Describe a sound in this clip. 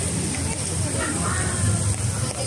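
A crowd of people talks nearby outdoors.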